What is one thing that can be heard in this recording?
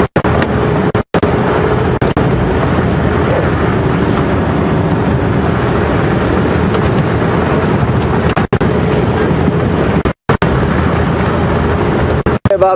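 Wind buffets loudly past the vehicle.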